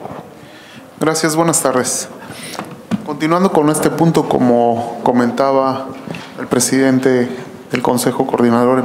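A man speaks steadily into a microphone in a large, echoing room.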